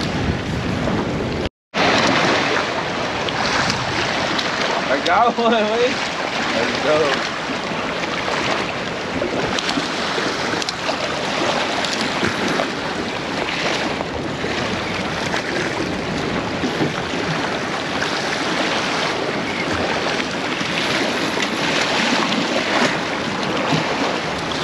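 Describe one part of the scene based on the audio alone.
Waves splash against rocks.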